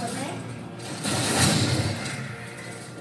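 A loud burst of noise erupts from a television speaker.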